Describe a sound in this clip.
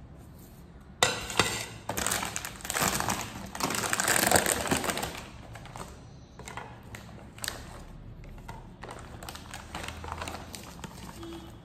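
A plastic bag crinkles and rustles loudly.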